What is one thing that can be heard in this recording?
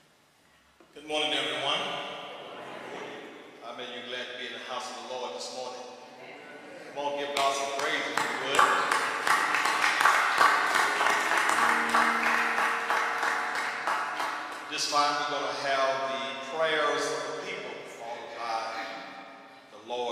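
An elderly man preaches with animation through a microphone in a large echoing hall.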